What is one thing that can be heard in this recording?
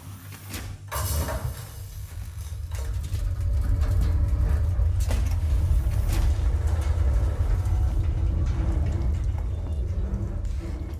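Steam hisses and rumbles loudly.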